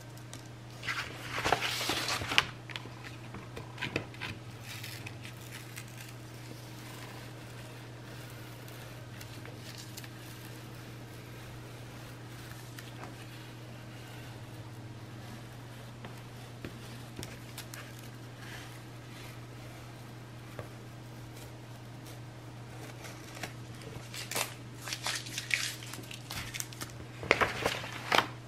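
Paper rustles and slides across a board.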